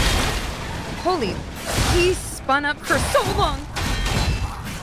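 A young woman speaks with surprise into a microphone.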